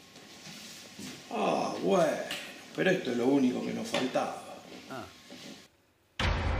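A middle-aged man answers with exasperation.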